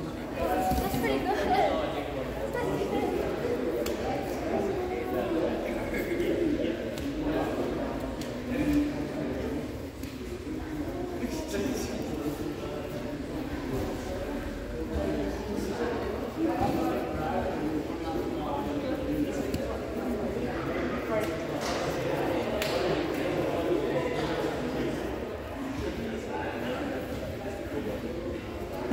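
Several people talk in a large echoing hall.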